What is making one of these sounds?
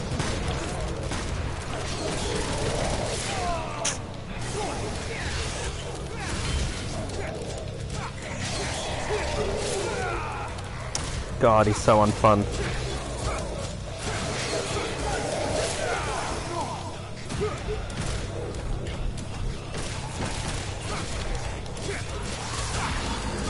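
Sword blades slash and clang against monsters in quick bursts.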